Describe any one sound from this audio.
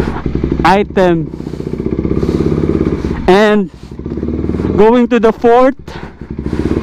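A motorcycle engine revs up sharply in short bursts and drops back.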